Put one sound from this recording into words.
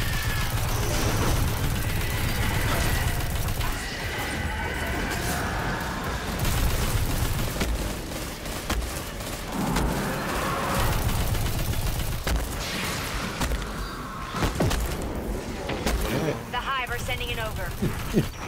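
Energy blasts crackle and boom nearby.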